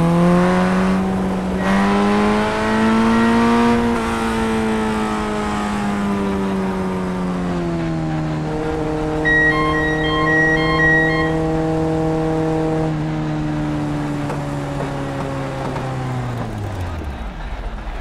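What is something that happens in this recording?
A racing car engine drones at high revs, easing off and slowing to a low hum before cutting out.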